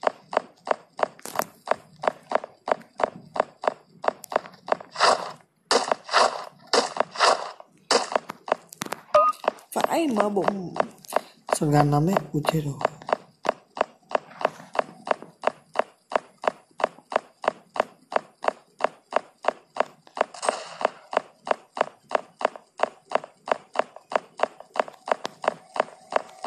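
Quick footsteps run steadily over hard ground.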